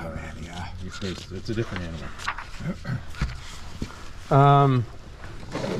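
Paper sheets rustle as pages are turned.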